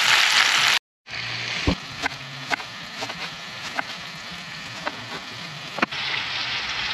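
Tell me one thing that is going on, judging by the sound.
A knife slices through a lemon with soft crunching cuts.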